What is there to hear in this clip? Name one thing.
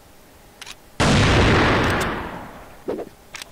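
A sniper rifle fires a single loud shot that booms and fades.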